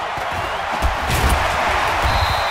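Football players' pads and helmets clash in a tackle.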